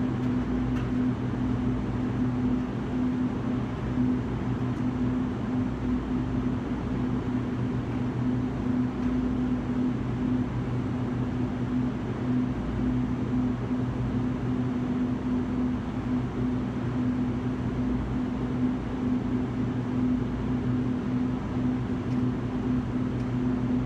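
An electrical hum drones steadily and low.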